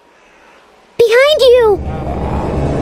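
A young girl shouts a warning in alarm.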